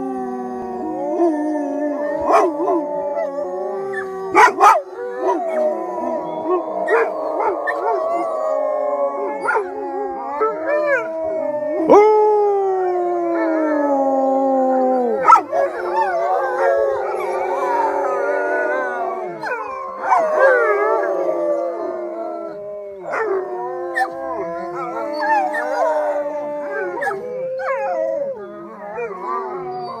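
Several dogs howl together in long, wavering cries close by.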